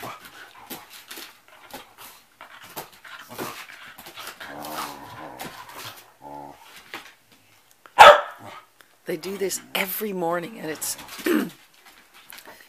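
Two dogs growl and whine as they play.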